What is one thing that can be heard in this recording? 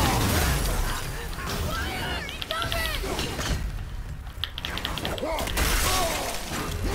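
Heavy blows thud and metal clangs in a fierce fight.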